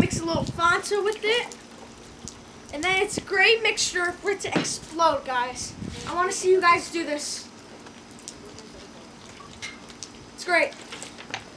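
Liquid pours and splashes from a bottle.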